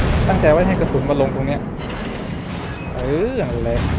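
Shells explode in the water with loud booms.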